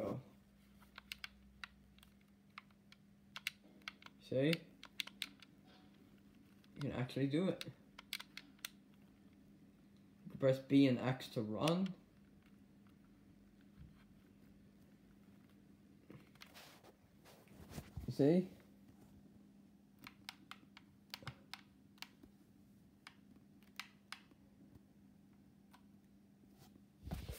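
Buttons click on a game controller.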